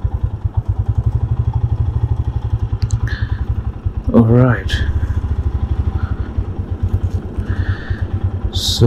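A motorcycle engine chugs steadily at low speed, close by.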